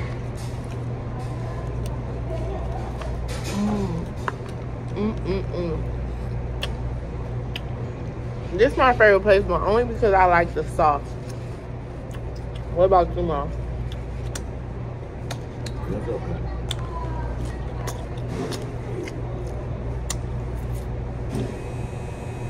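A young woman chews food with her mouth close to the microphone.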